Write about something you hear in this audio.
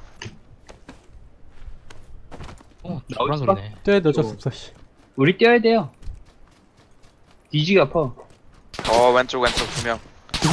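Footsteps run quickly over dry grass and dirt.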